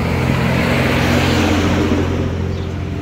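A truck engine rumbles close by.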